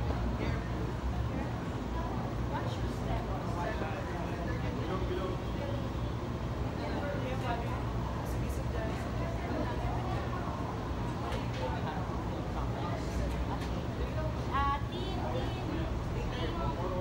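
Music with a heavy bass plays through loudspeakers in a large hall.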